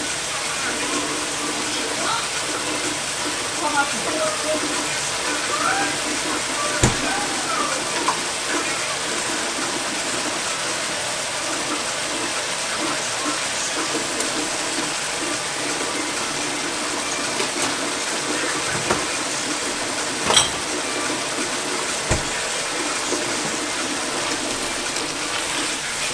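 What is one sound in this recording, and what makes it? Vegetables sizzle steadily in a hot pan.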